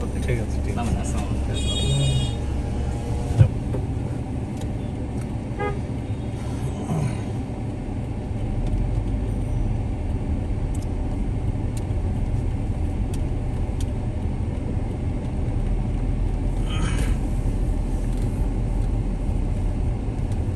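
A vehicle's engine rumbles steadily while driving.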